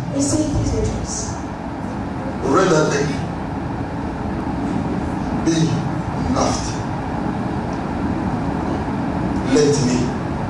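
A man preaches with animation into a microphone in an echoing hall.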